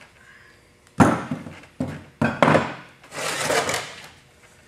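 Hands knock and tap on a hard box.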